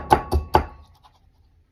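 A metal sieve taps sharply against a bowl a few times.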